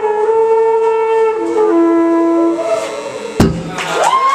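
A trumpet plays a short melody.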